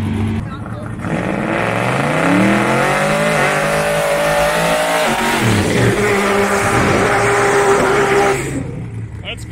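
Tyres screech loudly as they spin in place.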